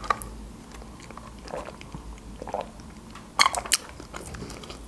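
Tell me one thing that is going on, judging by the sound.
A young woman sips a drink through a straw up close.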